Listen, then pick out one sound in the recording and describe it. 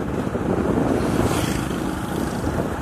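A passing motorcycle engine buzzes by close.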